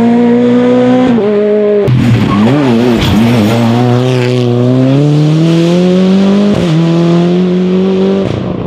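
A rally car engine roars loudly nearby, revving up and down through gear changes.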